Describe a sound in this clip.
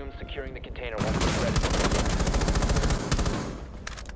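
A loud explosion bursts close by, followed by crackling.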